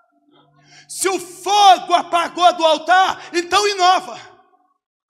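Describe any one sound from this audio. A man shouts with animation through a microphone in an echoing hall.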